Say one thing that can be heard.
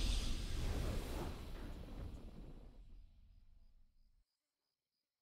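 A triumphant video game victory fanfare booms and slowly fades away.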